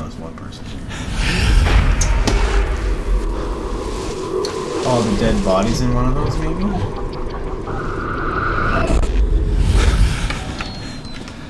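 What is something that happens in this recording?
A loud, deep rumbling roar swells and then dies away.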